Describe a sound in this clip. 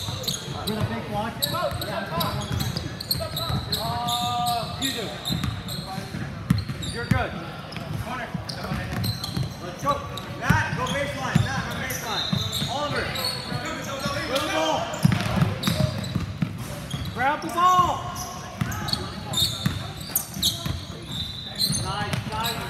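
Young players and spectators call out and chatter in the echoing hall.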